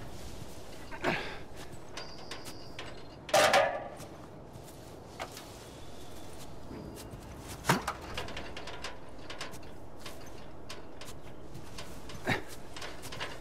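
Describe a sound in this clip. A metal ladder clanks against a brick wall.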